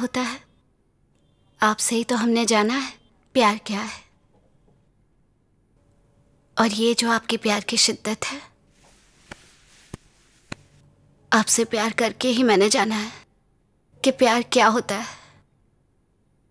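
A young woman speaks softly and intimately up close.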